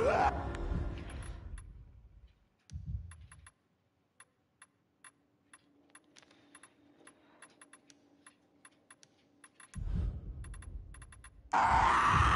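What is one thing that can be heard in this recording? Soft interface clicks tick quickly and repeatedly.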